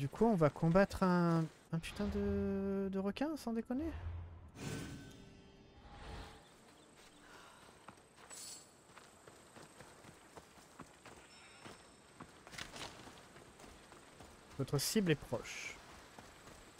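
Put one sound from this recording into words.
Footsteps run over grass and sand.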